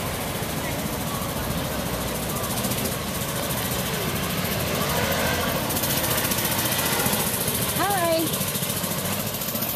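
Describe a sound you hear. A small toy car motor hums as it drives along the road.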